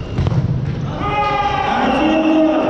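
Children shout and cheer in an echoing hall.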